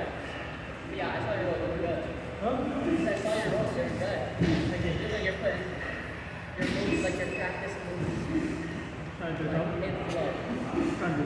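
A man talks nearby in a calm voice.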